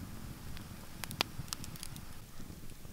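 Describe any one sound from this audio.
A wood fire crackles and pops.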